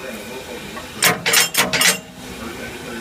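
Metal couplings clank sharply close by.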